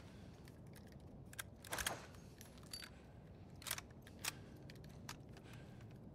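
A shotgun clicks and rattles as it is picked up.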